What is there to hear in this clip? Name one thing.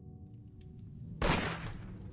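A fire crackles softly in a fireplace.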